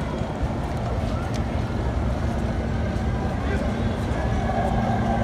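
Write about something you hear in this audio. A low hum of city street noise carries on steadily outdoors.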